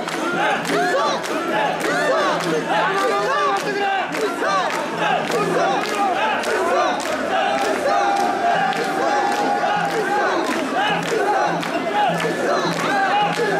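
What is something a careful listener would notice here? A large crowd of men and women chants loudly together close by.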